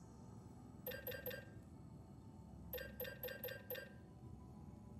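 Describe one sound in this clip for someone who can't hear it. Short electronic chimes beep in quick bursts.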